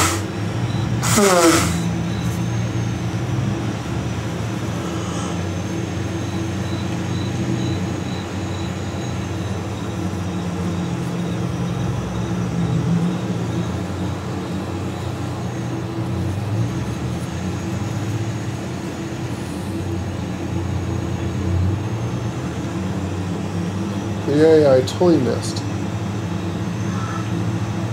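A tractor engine hums steadily at low revs.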